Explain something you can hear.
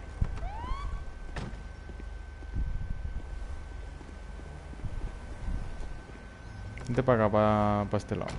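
A car door opens and slams shut.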